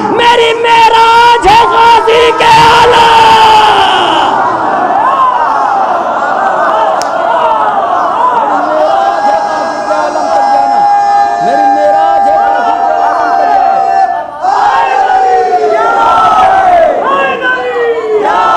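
A man recites loudly and with passion into a microphone, heard through loudspeakers with echo.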